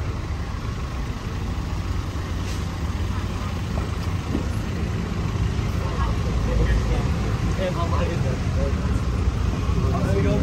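Footsteps tap on a pavement.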